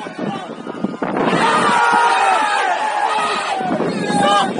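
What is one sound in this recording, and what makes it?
A crowd cheers loudly outdoors.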